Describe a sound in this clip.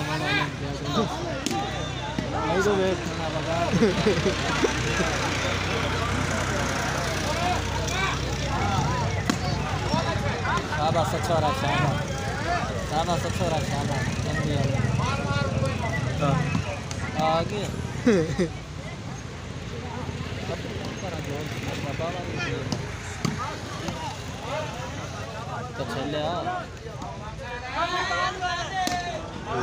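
A large outdoor crowd of men chatters and shouts.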